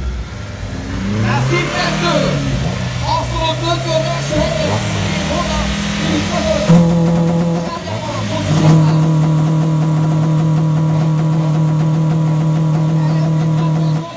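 A second car engine revs nearby.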